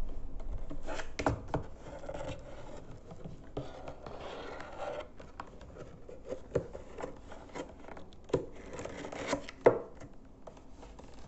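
Stiff paper rustles and scrapes as hands handle it.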